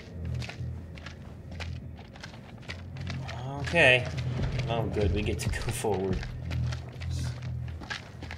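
Footsteps crunch on stone and grit.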